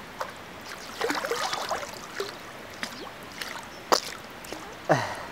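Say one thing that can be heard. A young man makes playful sounds with his voice.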